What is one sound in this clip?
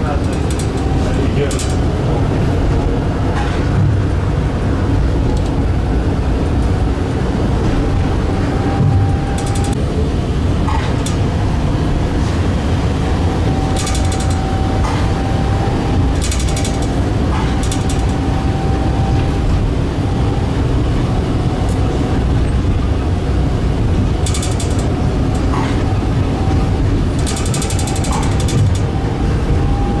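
A tram rumbles steadily along its rails.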